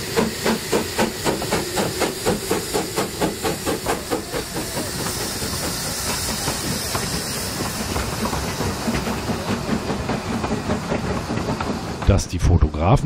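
Train wheels clack rhythmically over rail joints as carriages roll past.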